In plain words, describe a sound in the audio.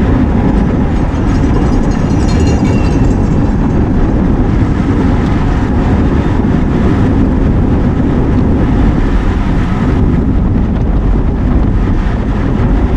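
Wind rushes and buffets loudly against a microphone.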